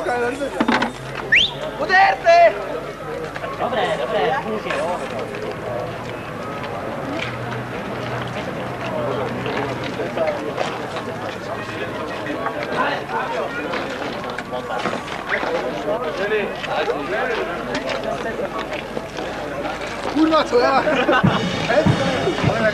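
A crowd of young men talks and chatters nearby outdoors.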